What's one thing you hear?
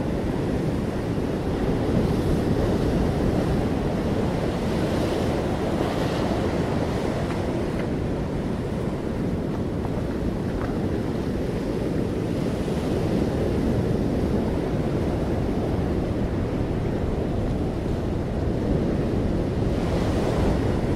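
Choppy water slaps and splashes against concrete.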